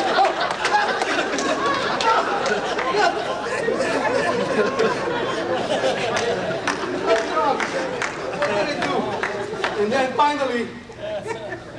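A crowd murmurs and chatters in a large echoing room.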